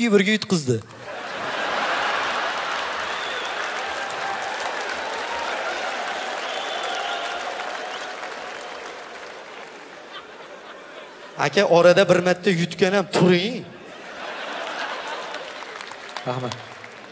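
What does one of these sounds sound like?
A large audience laughs and applauds in a large hall.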